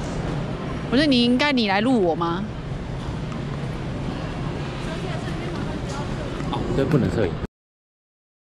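Footsteps shuffle on a hard floor.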